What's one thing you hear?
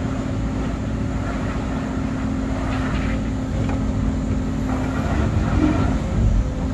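Hydraulics whine as the excavator arm moves.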